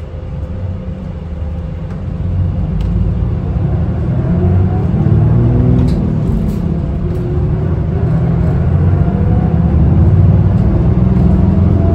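A car's engine hums steadily from inside as it drives along a road.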